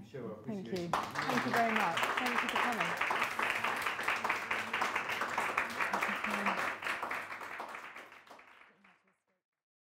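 An audience applauds and then fades out.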